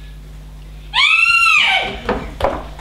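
A woman screams loudly on a stage.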